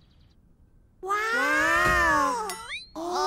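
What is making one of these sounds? A young girl cries out in a long, whiny voice.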